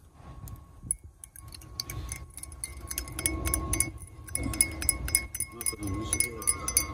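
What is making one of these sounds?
A spoon clinks rapidly against a glass while stirring tea.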